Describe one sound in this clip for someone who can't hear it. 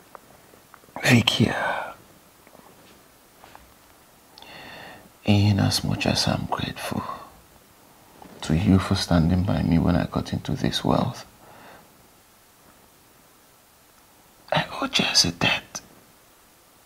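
A man speaks in a distressed, pained voice close by.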